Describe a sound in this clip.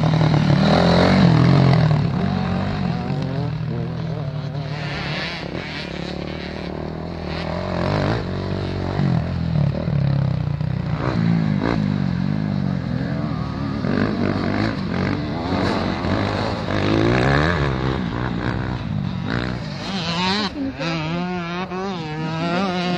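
Dirt bike engines rev and whine loudly as they climb a hill.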